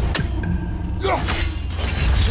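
A metal axe strikes a chain with a sharp clang.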